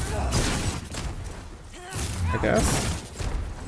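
A fireball roars and crackles as it flies.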